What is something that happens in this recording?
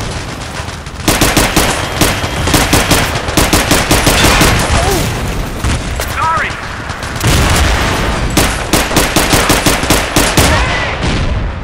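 Guns fire rapid bursts of shots close by.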